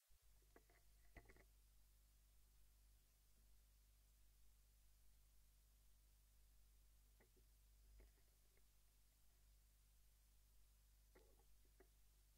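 Hands softly bump and shuffle a vinyl record on a turntable.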